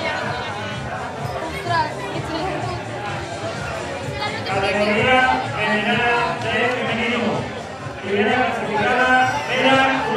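An older man reads aloud into a microphone, heard through a loudspeaker outdoors.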